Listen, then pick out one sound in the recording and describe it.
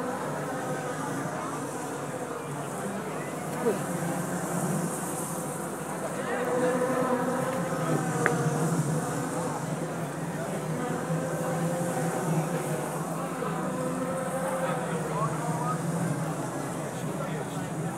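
A crowd chatters in the background outdoors.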